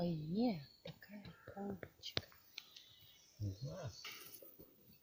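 A woman speaks with animation close by.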